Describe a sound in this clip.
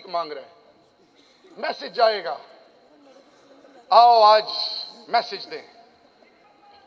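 A man announces loudly over a loudspeaker in a large echoing hall.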